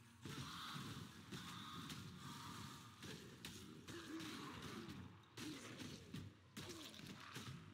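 Melee weapons strike monsters in a video game battle.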